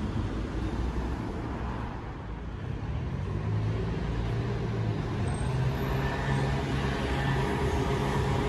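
City traffic rumbles steadily nearby, outdoors.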